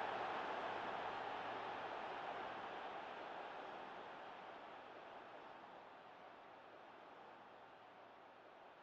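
A large stadium crowd roars and slowly fades.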